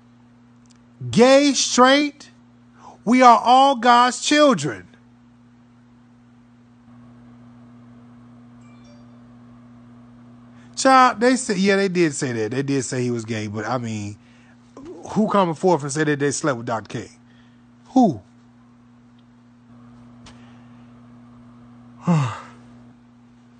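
A man talks with animation close to a phone microphone, in bursts with pauses.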